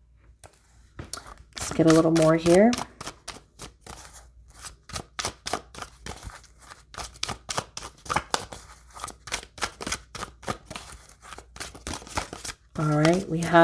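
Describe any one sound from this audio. Playing cards are shuffled by hand, with quick flicks and slaps.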